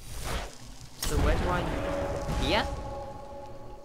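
A magic blast bursts with a loud, roaring whoosh.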